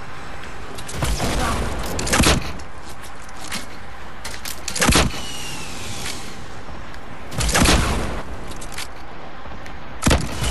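Rockets explode with loud booming blasts.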